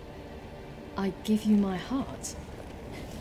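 A young woman speaks briefly and calmly.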